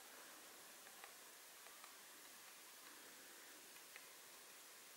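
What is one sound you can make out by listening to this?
A woodpecker taps on a tree trunk.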